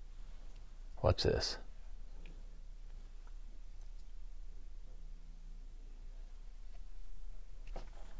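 Small plastic parts click softly as a screwdriver works on them.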